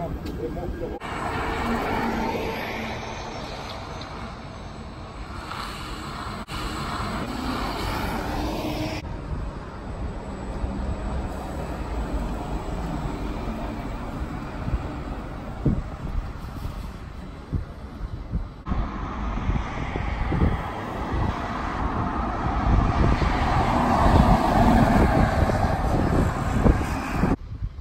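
A bus drives past on a road.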